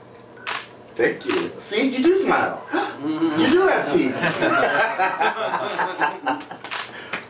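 Two men laugh heartily together.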